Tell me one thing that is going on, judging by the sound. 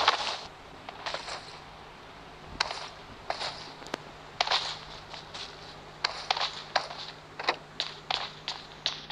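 Footsteps thud at an even pace on a hard floor.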